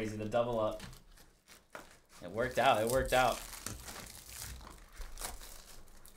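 A cardboard box is torn open and wrappers rustle.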